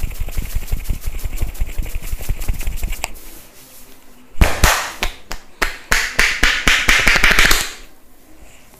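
Hands rapidly tap and slap on a man's head.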